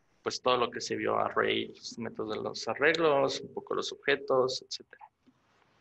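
A man talks calmly into a microphone, heard as if over an online call.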